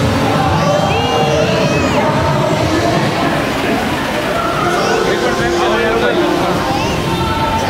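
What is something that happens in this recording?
A lively crowd of men, women and children cheers and chatters loudly nearby.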